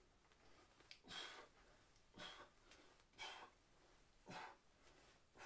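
A young man breathes out hard in short bursts.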